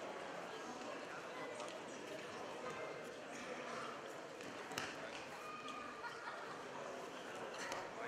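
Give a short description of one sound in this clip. Wrestlers' feet thump and scuff on a mat.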